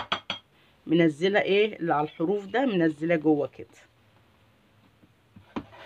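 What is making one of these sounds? A spatula scrapes and taps inside a plastic bowl.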